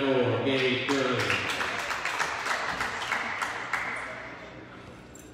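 A crowd claps and cheers in a large echoing gym.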